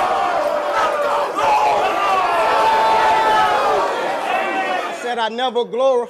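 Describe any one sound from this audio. A crowd murmurs and calls out.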